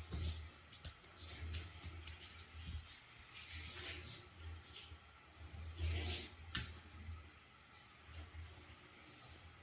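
A kitten's paws tap and scrape against mirror glass.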